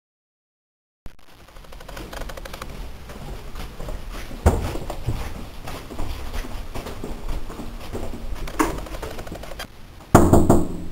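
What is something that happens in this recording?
Footsteps walk along a hard floor close by.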